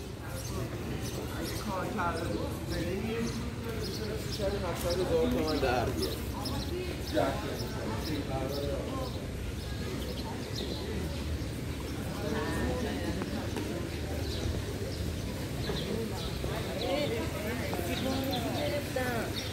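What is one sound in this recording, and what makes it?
Footsteps tap on wet paving.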